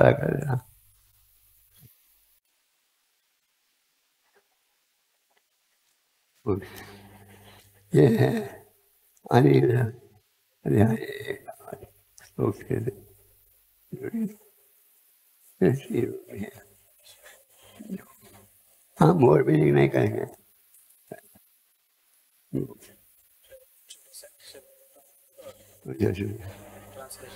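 An elderly man speaks slowly and calmly into a close microphone, reading out in short phrases with pauses.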